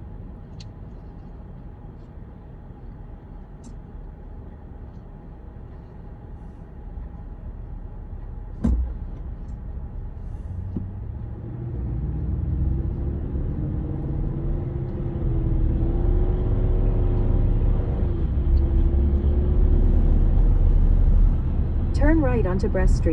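A car engine hums from inside the car and grows louder as the car speeds up.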